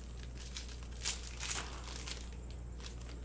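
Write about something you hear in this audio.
Cardboard packaging rustles and crinkles as it is opened.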